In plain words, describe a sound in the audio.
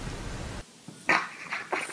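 A dog whimpers in short, high bursts.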